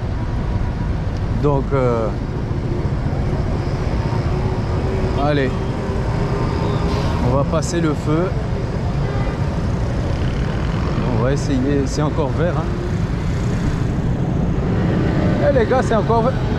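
Motor scooters putter past close by.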